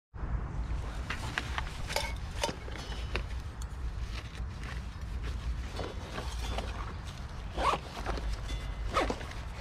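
Metal cookware clinks and scrapes as it is handled.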